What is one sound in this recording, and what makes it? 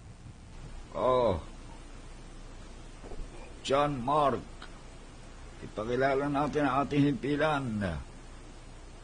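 A middle-aged man speaks into a microphone in short bursts, heard close.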